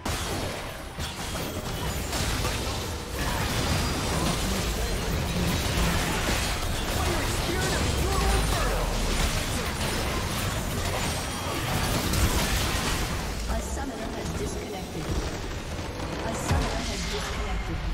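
Game spells and weapons clash and burst in a busy battle.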